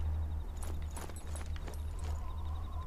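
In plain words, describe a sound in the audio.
Soft footsteps scuff on stone steps.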